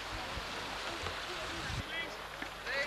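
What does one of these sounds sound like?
Water rushes over rocks in a stream.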